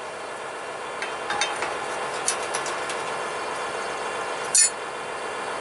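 Metal parts clink and knock now and then.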